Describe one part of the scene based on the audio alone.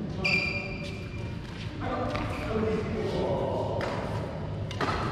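Badminton rackets smack shuttlecocks in a large echoing hall.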